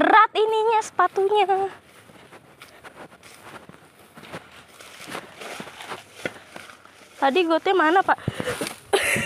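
Footsteps walk through grass.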